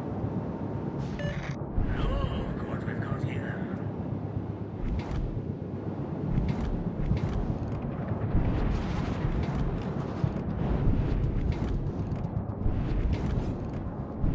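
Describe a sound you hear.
A ship's engines rumble low and steady.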